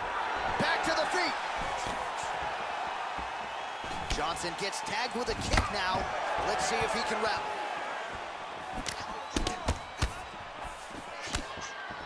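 Punches land with sharp thuds.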